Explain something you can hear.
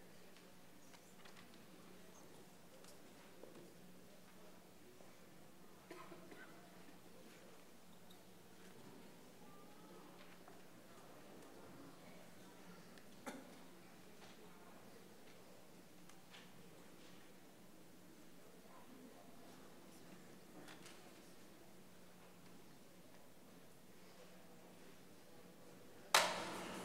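A congregation murmurs and shifts quietly in a large echoing hall.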